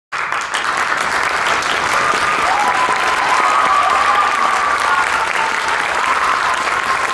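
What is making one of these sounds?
An audience applauds warmly in a large hall.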